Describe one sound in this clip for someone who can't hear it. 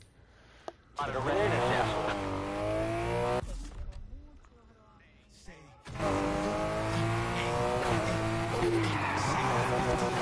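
A car engine revs hard and roars as it accelerates.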